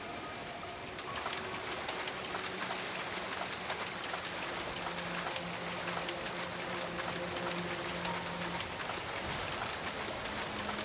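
Feet splash rapidly through shallow water.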